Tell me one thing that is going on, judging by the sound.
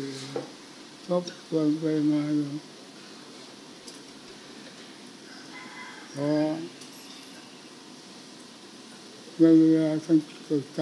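An elderly man speaks slowly into a microphone, heard through a loudspeaker.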